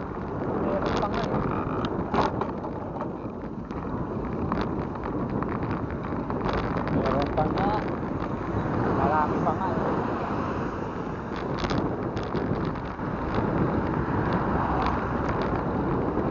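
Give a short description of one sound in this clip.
Tyres roll steadily over pavement.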